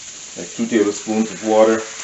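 Water pours into a hot pan.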